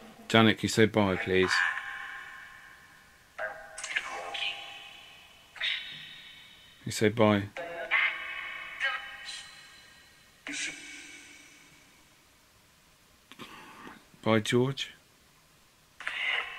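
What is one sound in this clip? A man talks close by in short bursts, with a strong echo after each.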